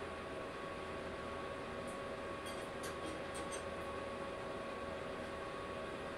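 A wrench clicks against metal.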